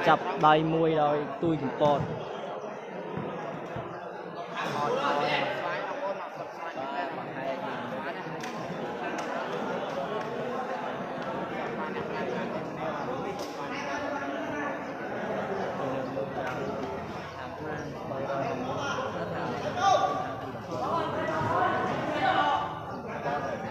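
Young men shout during play.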